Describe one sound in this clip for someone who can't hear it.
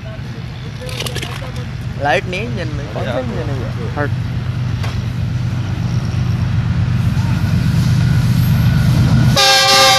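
A diesel locomotive engine rumbles steadily, growing louder as it approaches.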